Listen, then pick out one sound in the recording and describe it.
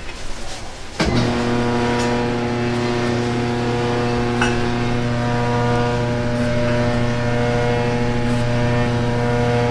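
Water churns and splashes.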